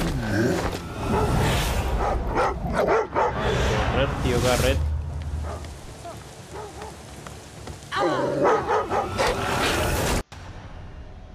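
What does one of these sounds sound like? Dogs bark and snarl close by.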